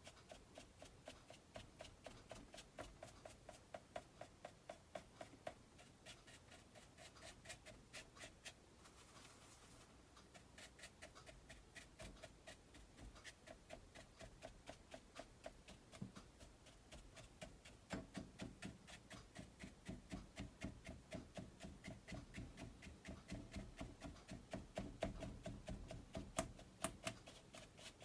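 A stiff brush taps and dabs rapidly on paper.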